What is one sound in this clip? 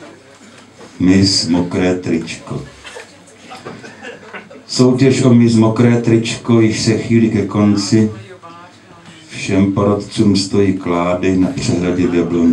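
An elderly man reads aloud into a microphone in a calm, deep voice.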